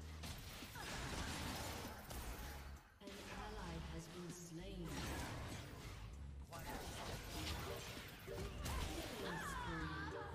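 Fantasy game spells whoosh and crackle.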